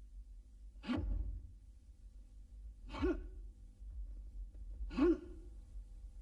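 Feet stamp sharply on the floor.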